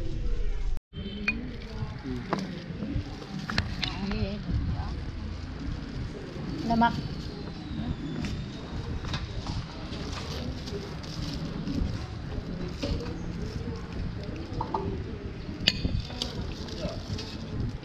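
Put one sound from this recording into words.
A metal ladle clinks against a pot and a bowl.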